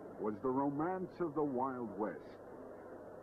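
A man speaks with animation, close by, through old, hissy film sound.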